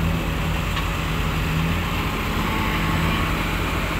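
Dirt pours from an excavator bucket into a dump truck bed.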